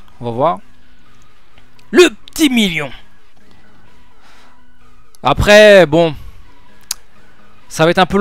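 A young man exclaims loudly into a microphone in short bursts.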